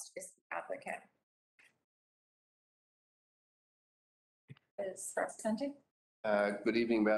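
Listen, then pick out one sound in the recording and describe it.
A woman speaks calmly into a microphone, in short phrases with pauses.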